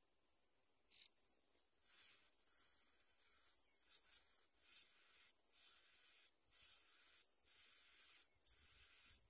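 Nestlings chirp and squeal loudly for food.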